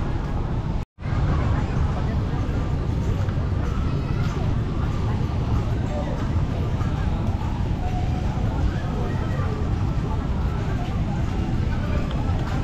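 A crowd murmurs in the distance outdoors.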